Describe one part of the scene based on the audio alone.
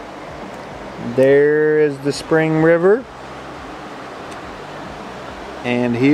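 A river flows gently nearby.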